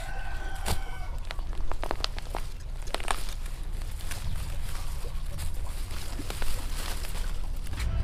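A hoe chops and scrapes into dry soil.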